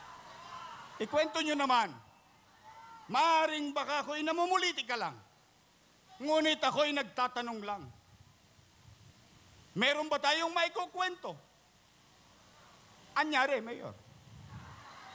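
A man speaks loudly and forcefully through loudspeakers in a large echoing hall, in short bursts.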